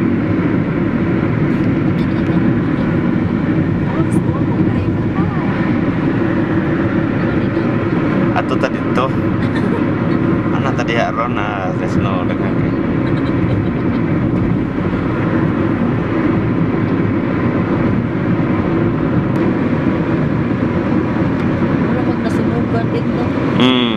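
A car's engine and tyres hum steadily as it drives along a highway, heard from inside.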